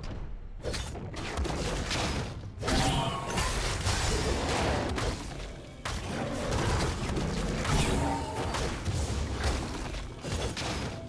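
Magic spells whoosh and crackle in a video game fight.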